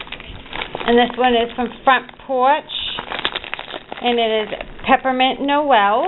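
A paper bag crinkles as it is opened.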